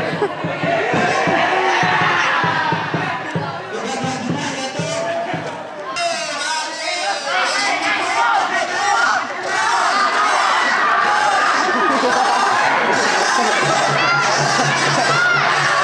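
A crowd of boys shouts and cheers outdoors.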